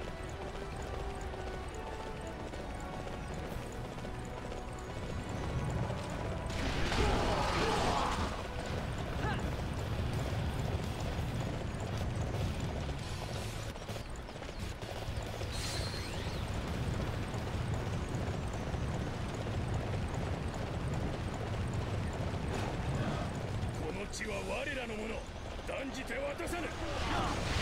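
Horse hooves thud steadily at a gallop.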